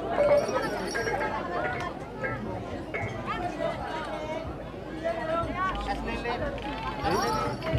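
A large outdoor crowd of men and women chatters and calls out loudly.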